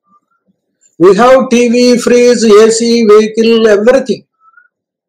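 An elderly man speaks steadily through a headset microphone over an online call.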